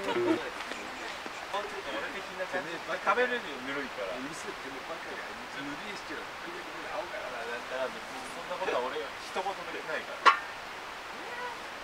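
A man talks quietly to himself, close by.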